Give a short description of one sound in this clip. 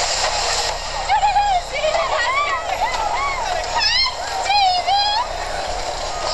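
Young people scream and whoop excitedly on a ride.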